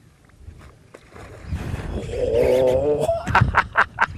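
A fish splashes loudly at the surface of the water.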